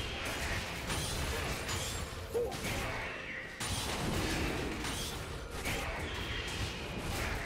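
Fiery spell blasts burst and roar.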